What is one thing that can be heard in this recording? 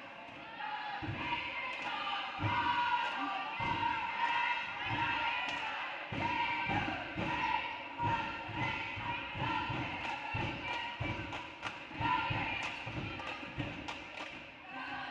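A basketball bounces with dull thuds as a player dribbles.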